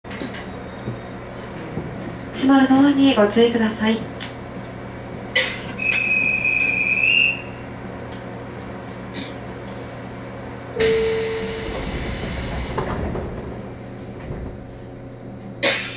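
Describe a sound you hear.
A stopped train's motor hums steadily.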